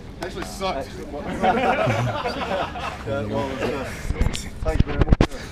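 A man talks cheerfully close by.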